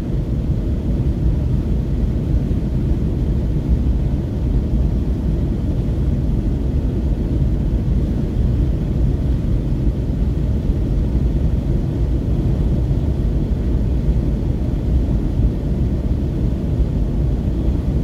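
Road and tyre noise rumbles from inside a car driving at highway speed on asphalt.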